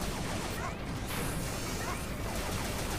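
A loud electronic explosion bursts and crackles.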